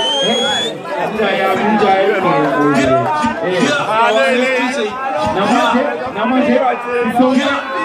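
A young man raps loudly into a microphone through loudspeakers.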